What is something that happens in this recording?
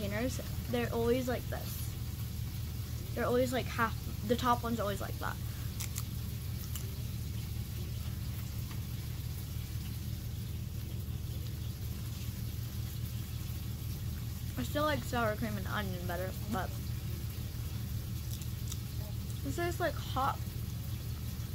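A young girl crunches a crisp chip.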